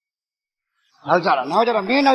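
A man speaks and laughs, close by.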